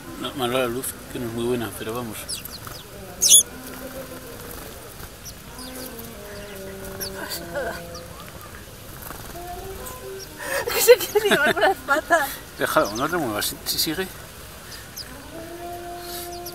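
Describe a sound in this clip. Sparrows chirp close by.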